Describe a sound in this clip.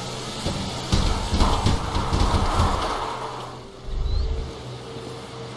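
A boat hull scrapes and thumps onto sand.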